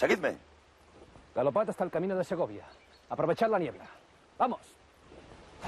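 A man speaks loudly and commandingly.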